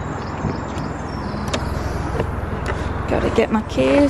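A car boot lid clicks open.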